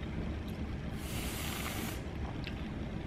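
Whipped cream hisses from a spray can.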